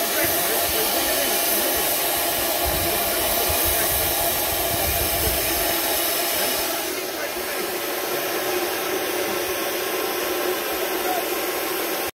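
A steam engine hisses and chuffs steadily.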